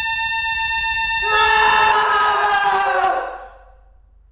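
A young man screams in a long, high-pitched wail close by.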